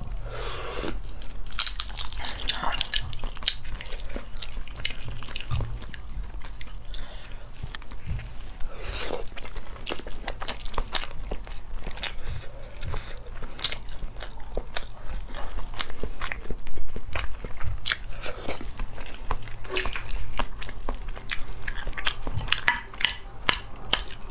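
Eggshell cracks and crinkles as it is peeled close up.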